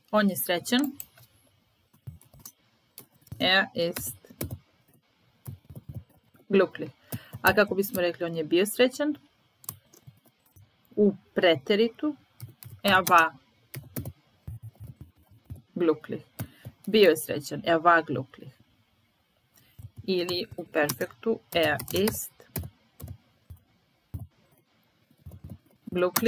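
A young woman speaks calmly and clearly into a microphone, pausing between phrases.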